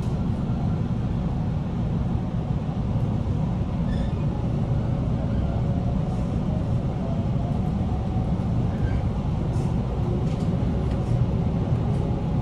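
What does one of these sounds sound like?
An electric commuter train rushes past close alongside.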